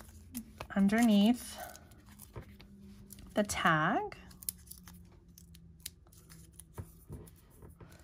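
Paper and card rustle and tap softly as they are handled close by.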